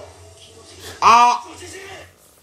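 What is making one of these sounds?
A young man cries out loudly in surprise.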